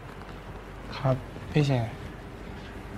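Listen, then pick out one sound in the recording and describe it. A teenage boy answers briefly and calmly nearby.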